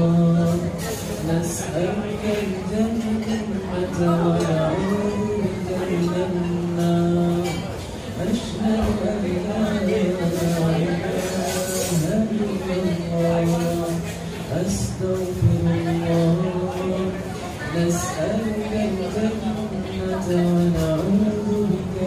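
A young man sings a melodic chant into a microphone.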